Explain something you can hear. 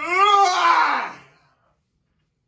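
A young man yawns loudly.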